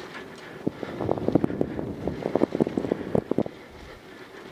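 Bike tyres rattle and bump over a rough dirt trail.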